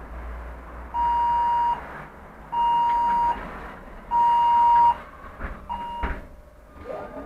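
A bus door warning beeps several times in loud, steady tones.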